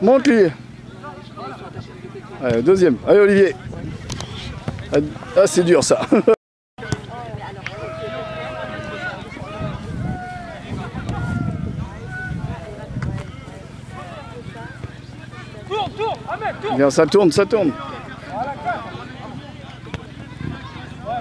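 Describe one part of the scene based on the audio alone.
Men shout to each other across an open grass field.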